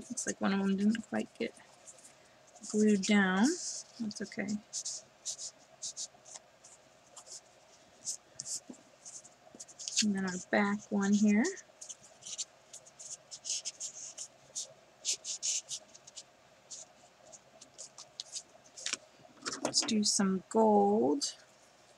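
Stiff paper rustles and slides as cards are handled.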